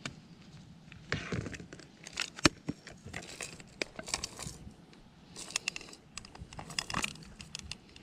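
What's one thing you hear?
Plastic parts clatter and click as they are handled close by.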